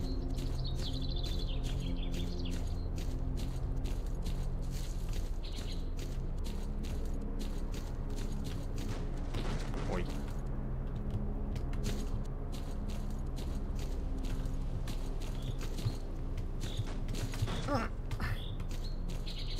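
Footsteps crunch steadily through dry grass.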